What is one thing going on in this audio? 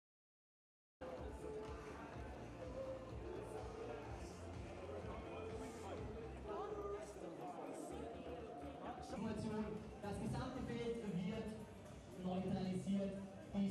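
A crowd murmurs and chatters outdoors.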